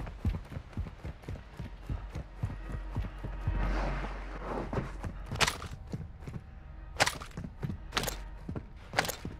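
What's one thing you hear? Footsteps thud at a quick, steady pace on a hard floor.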